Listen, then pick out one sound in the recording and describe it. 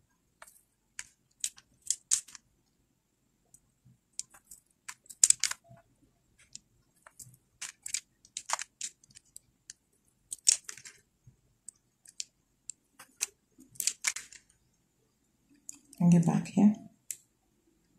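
Thin wire rustles and scrapes as it is threaded through beads.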